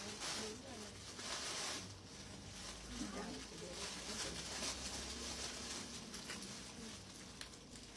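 Fabric rustles as garments are handled.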